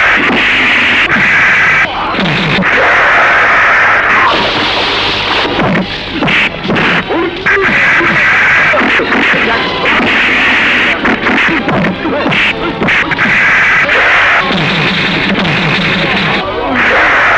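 A man grunts while fighting.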